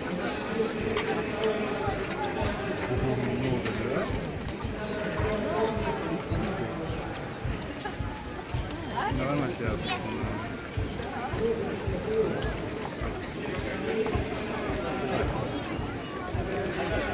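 Footsteps of many people shuffle along a paved path.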